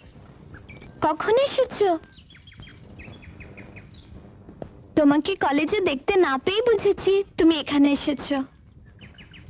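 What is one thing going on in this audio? A young woman sings a melodic song in a clear, high voice.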